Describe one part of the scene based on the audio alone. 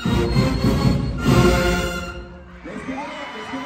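A marching band's brass and drums play loudly in an echoing hall.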